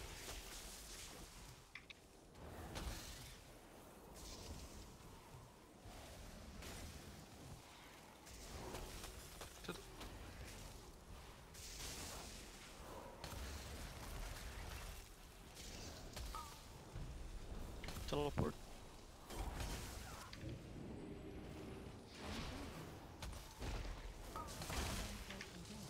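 Magic spells crackle and whoosh in a busy battle.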